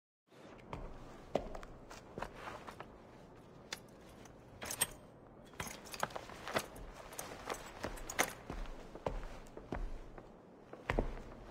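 Small objects knock and clatter as a man handles them.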